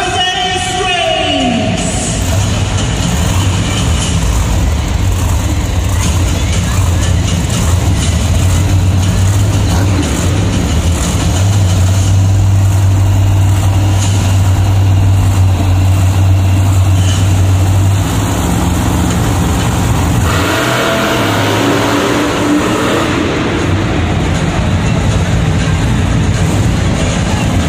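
Monster truck engines rumble and roar loudly.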